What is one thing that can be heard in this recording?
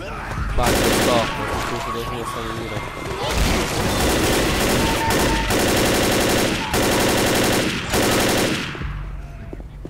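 Rapid automatic rifle fire rattles in loud bursts.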